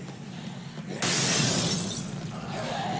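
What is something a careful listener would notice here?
A loud burst of noise from a game fight rings out suddenly.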